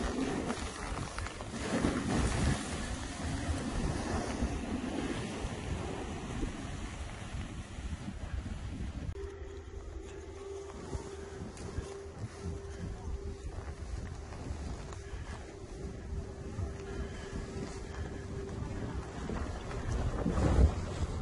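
Skis scrape and hiss over snow.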